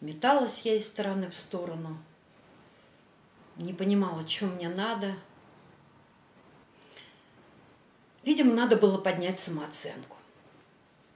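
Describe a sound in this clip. A middle-aged woman speaks calmly, close by.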